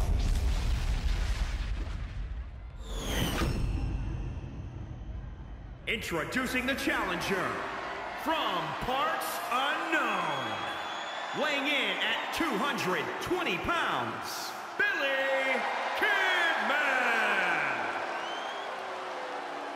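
A large crowd cheers in a big echoing arena.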